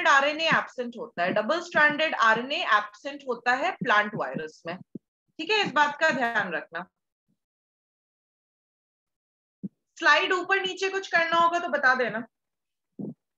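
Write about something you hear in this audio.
A woman speaks calmly into a microphone, as if over an online call.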